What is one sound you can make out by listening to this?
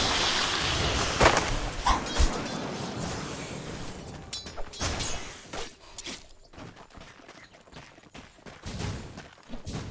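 Game weapons clash and strike in quick hits.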